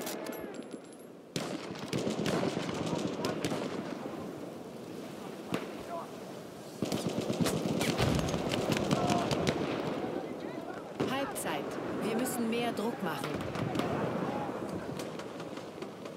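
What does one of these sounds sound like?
Gunshots crack repeatedly across an open battlefield.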